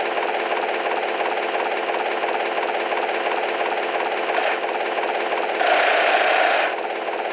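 A helicopter's rotor chops steadily overhead.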